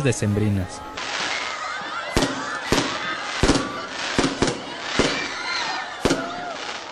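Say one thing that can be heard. Fireworks bang and crackle overhead.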